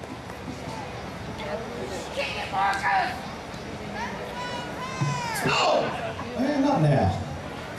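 A rock band plays electric guitars and drums.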